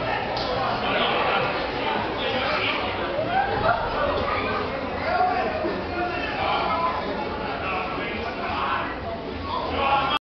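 A man speaks loudly on a stage in an echoing hall.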